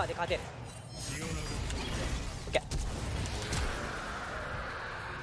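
Magic spell effects whoosh and crackle in a fight.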